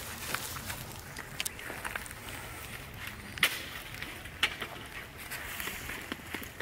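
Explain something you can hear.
A baby monkey gives short, soft squeaks close by.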